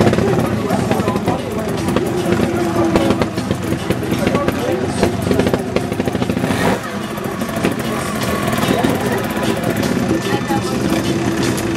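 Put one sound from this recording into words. Motorbike tyres knock against rocks.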